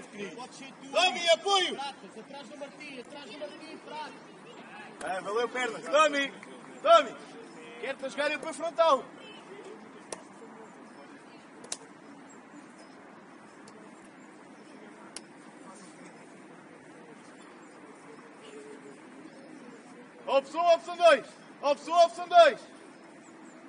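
Young players shout to each other outdoors on an open field.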